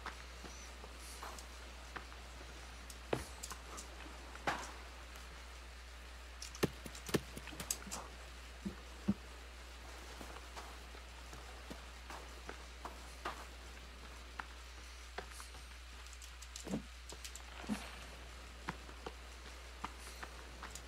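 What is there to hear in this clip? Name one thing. Hands knock and scrape against wooden logs while climbing.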